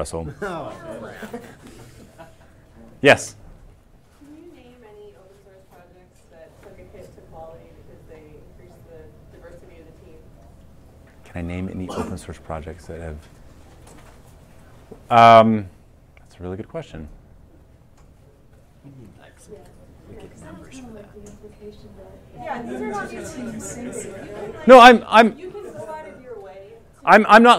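A man speaks calmly to an audience.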